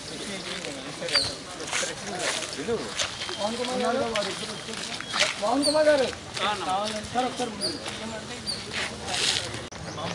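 Footsteps shuffle on a dirt path.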